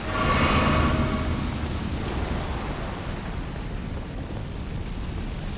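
Armoured footsteps run over rough ground.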